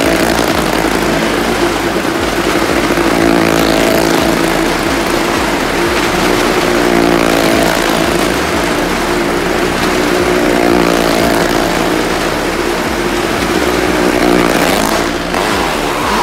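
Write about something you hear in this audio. Motorcycle and car engines roar steadily in a large echoing drum.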